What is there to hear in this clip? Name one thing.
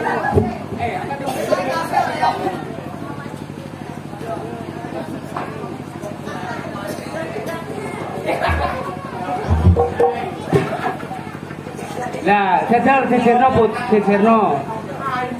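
A crowd of children laughs and chatters.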